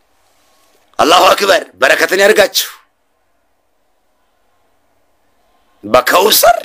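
A man speaks close to a phone microphone with animation.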